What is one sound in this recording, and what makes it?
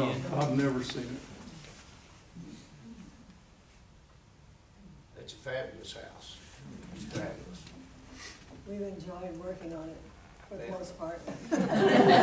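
A man speaks to a group in a room with a slight echo.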